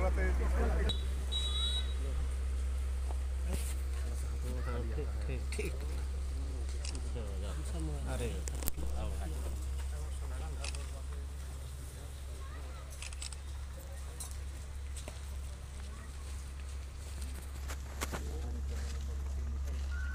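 Several men talk in a murmur nearby outdoors.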